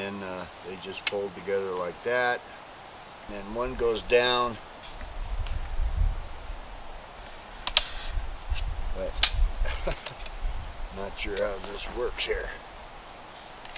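Metal poles click and clatter as they are folded.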